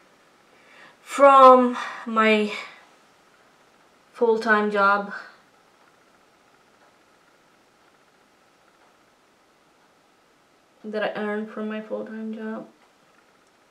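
A woman talks calmly and close up, in short bursts.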